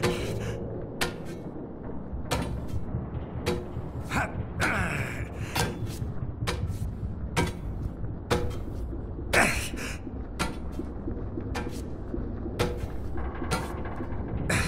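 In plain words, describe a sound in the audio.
Hands grab metal climbing bars with regular dull clunks.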